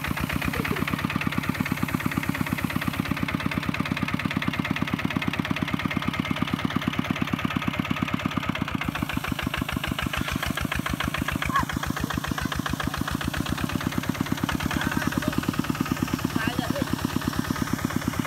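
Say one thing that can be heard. Muddy water splashes and churns under turning wheels.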